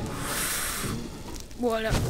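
A fire crackles and hisses.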